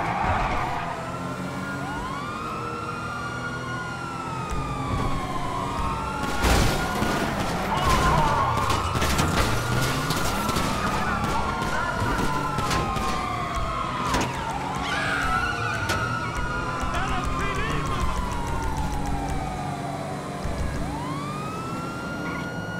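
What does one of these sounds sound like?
A police siren wails continuously.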